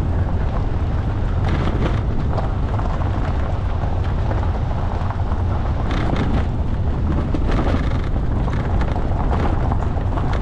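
Tyres crunch and rattle over loose gravel.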